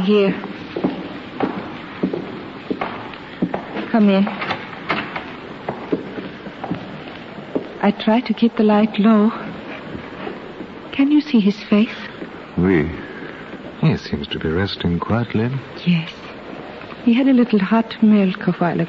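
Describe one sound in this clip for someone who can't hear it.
A man reads out lines with feeling into a microphone, heard through an old radio recording.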